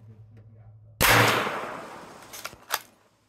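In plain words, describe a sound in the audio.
A rifle fires a loud shot outdoors, and the blast echoes and fades away.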